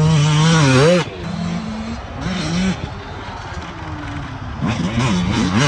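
A dirt bike engine drones in the distance.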